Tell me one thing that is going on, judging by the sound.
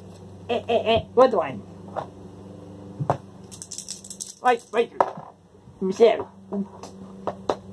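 Small game pieces click onto a board.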